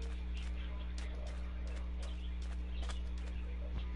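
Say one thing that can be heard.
A cactus block crunches as it is broken.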